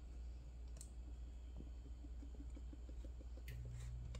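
Oil trickles into a metal pot.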